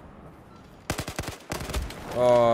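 A rifle fires several quick shots.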